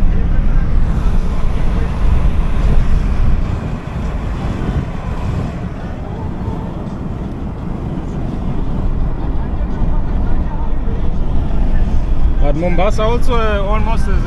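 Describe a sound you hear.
Wind rushes past an open car window.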